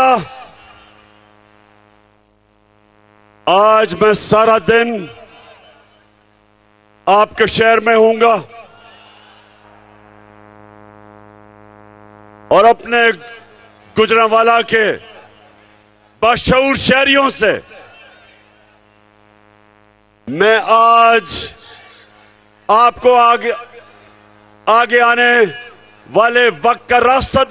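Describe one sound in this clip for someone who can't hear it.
A man shouts a speech through loudspeakers in short forceful bursts, echoing outdoors.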